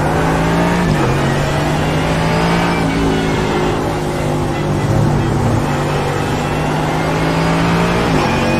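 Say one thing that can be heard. A racing car engine roars steadily at high revs, dropping in pitch with a gear change.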